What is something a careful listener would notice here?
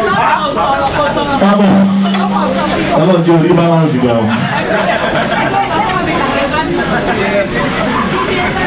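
A crowd of men and women talk and laugh over one another nearby.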